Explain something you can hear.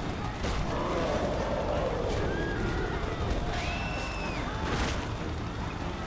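Heavy blows thud and crash in a fight.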